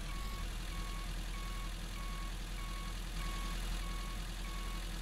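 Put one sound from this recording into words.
A large truck's diesel engine rumbles steadily.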